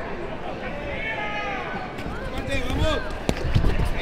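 Boxing gloves thud as punches land.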